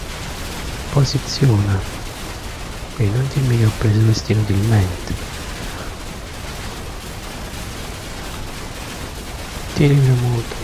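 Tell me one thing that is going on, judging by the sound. A man speaks casually into a close microphone, in short bursts.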